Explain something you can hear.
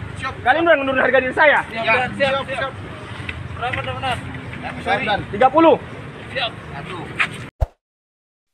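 A man speaks with animation close by, outdoors.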